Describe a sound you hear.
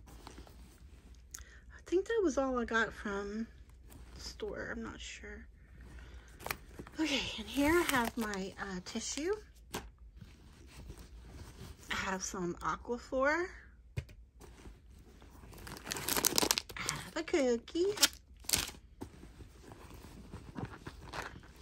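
Items rustle and clatter as a hand rummages through a bag.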